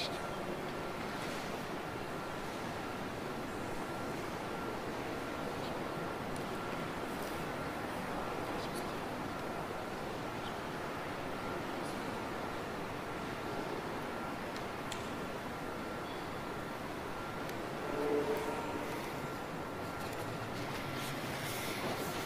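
An elderly man speaks calmly in a large echoing hall.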